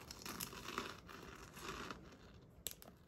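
A plastic wrapper crinkles between fingers.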